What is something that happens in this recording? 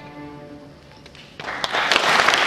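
A string orchestra plays a sustained chord, then stops.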